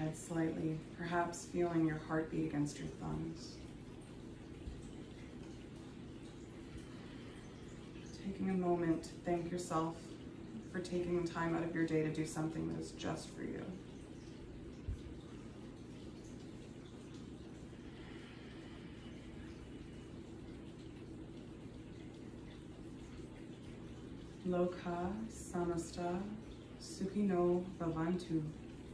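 A young woman speaks calmly and softly nearby, with long pauses.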